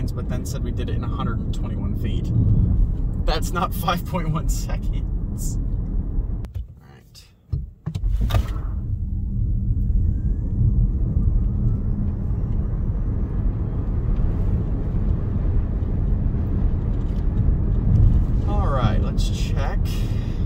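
A car's interior rumbles steadily as it drives along a road.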